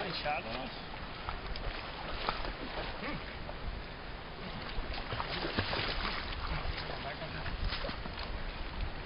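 Water splashes as men move in shallow water.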